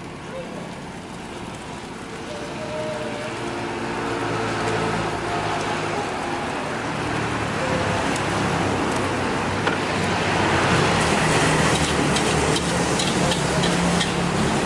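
A metal spatula scrapes and clatters against a steel wok.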